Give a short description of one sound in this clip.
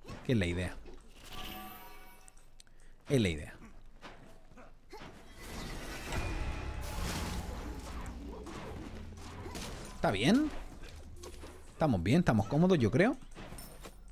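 Magic spell effects whoosh and zap in bursts.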